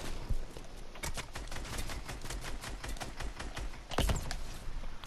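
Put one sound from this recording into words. Quick footsteps clatter on wooden planks.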